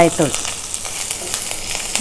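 A spatula scrapes against a pan.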